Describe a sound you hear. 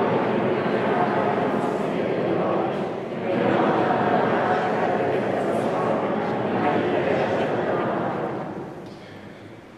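A middle-aged man chants slowly into a microphone in an echoing hall.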